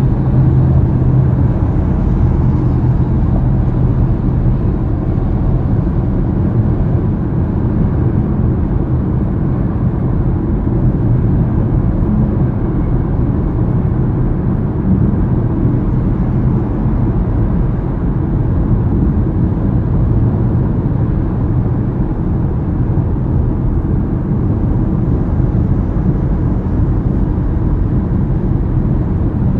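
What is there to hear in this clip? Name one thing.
A car hums steadily at highway speed, with road noise rumbling inside the cabin.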